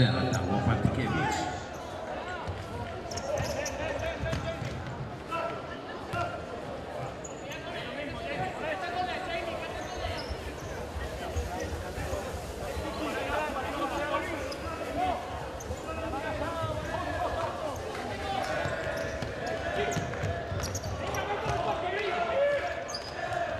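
A crowd cheers and chatters steadily in a large echoing hall.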